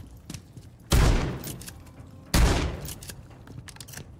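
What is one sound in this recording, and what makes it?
A shotgun fires two loud blasts that echo indoors.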